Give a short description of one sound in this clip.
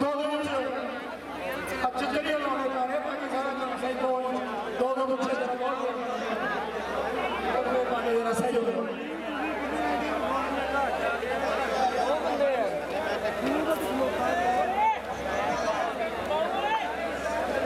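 A large crowd of men murmurs and talks all around.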